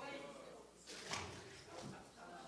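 A bottle splashes into water.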